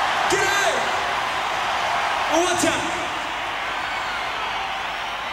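A huge crowd cheers and roars in an open stadium.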